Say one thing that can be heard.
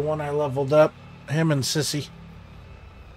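A man speaks loudly and briefly into a close microphone.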